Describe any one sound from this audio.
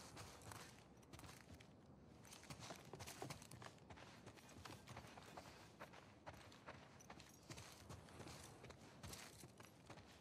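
Footsteps tread steadily on a hard floor, crunching on debris.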